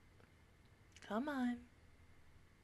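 A young woman briefly hums close to a microphone.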